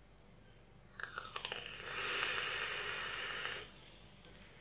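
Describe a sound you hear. A man inhales through a vape device with a long hissing crackle.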